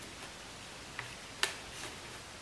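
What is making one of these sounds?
Small metal parts click softly as they are taken apart by hand.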